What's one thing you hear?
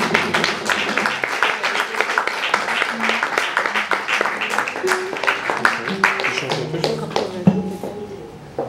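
An acoustic guitar is plucked and strummed nearby.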